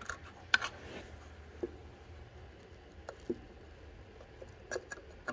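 A hand tinkers with metal engine parts, making small clicks and knocks.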